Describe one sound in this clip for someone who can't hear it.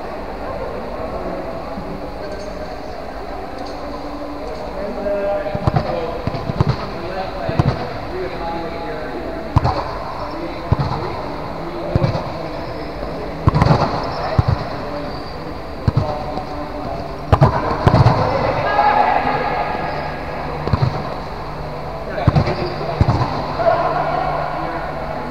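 Players' shoes squeak on the court.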